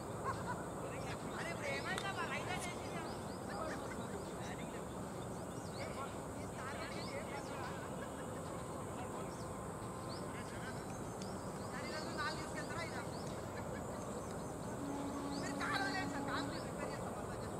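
Men call out and talk to each other at a distance.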